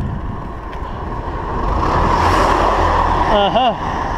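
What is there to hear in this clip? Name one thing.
A minibus drives past close by.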